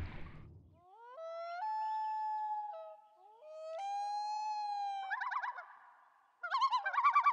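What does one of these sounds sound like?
A loon wails across the water.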